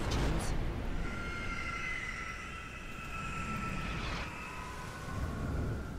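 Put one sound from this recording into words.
A large bird lets out a long shrill cry.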